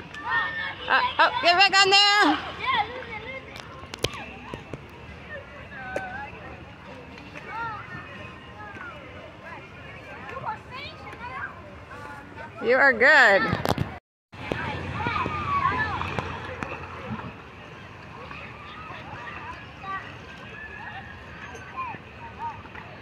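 Water splashes as children step across floating pads in a pool.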